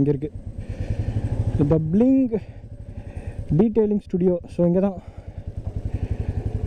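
A motorcycle engine thumps steadily at close range.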